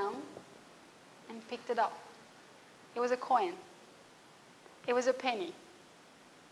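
A woman speaks with animation through a microphone, pausing between short phrases.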